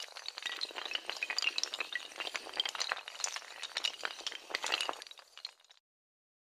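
Many small tiles clatter and tumble against each other.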